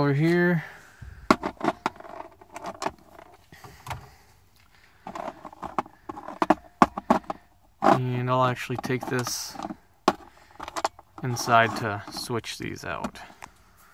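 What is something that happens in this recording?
Small metal parts clink and rattle on a plastic tray.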